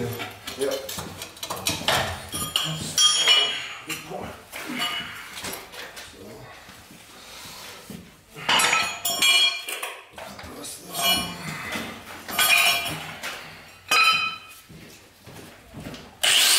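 A hammer taps a chisel against concrete in sharp knocks.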